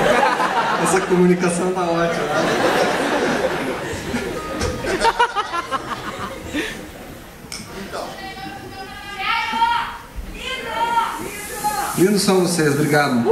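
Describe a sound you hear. An electric guitar plays through an amplifier.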